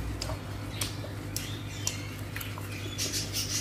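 Fingers squish and mix rice in a plate close by.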